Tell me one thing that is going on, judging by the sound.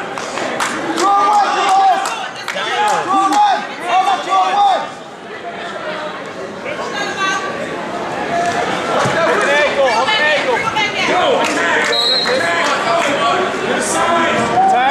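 A man close by shouts encouragement.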